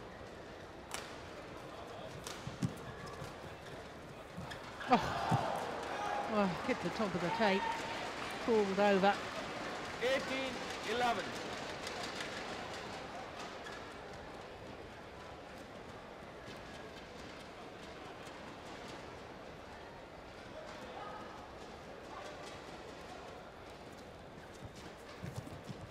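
A shuttlecock is struck sharply by rackets.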